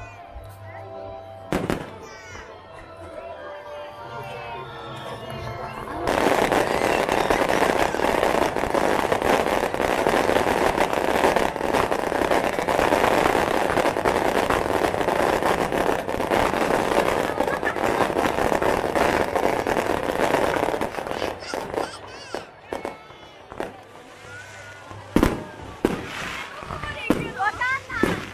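Fireworks bang and crackle overhead.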